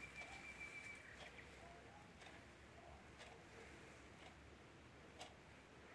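Dry reeds rustle as a hand brushes against them.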